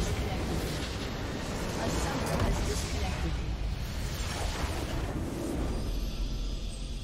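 A game's structure explodes with a loud, rumbling blast.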